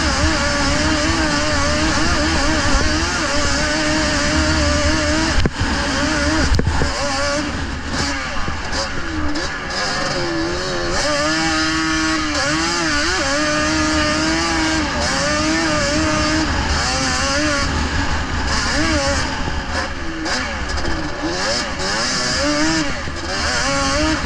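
A small engine whines loudly, revving up and down as the vehicle races along.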